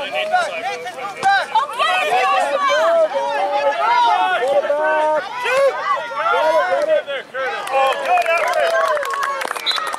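Young children shout and squeal excitedly outdoors.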